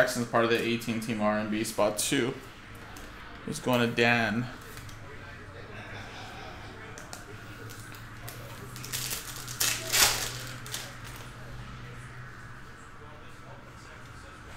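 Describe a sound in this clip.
Plastic card sleeves rustle and crinkle in hands.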